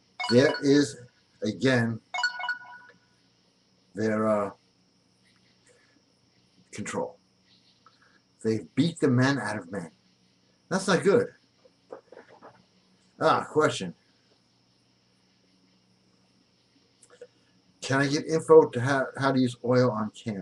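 A middle-aged man talks with animation, close to a microphone, in short bursts with pauses.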